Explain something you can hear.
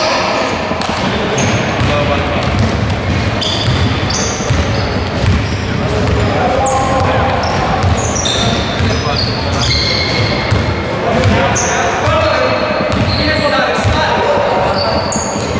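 A basketball bounces on a hard floor, echoing in a large hall.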